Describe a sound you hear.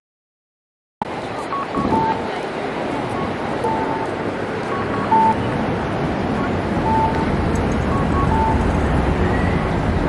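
Pedestrians chatter on a busy street outdoors.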